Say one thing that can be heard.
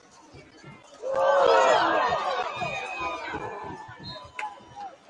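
A crowd of spectators cheers loudly outdoors, then the noise slowly fades.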